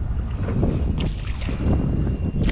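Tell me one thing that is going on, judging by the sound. A fish splashes in the water nearby.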